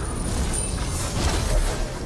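A bowstring twangs as an arrow flies.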